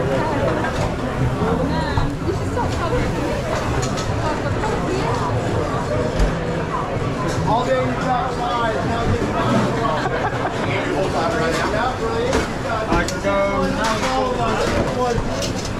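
Dishes and utensils clink and clatter now and then.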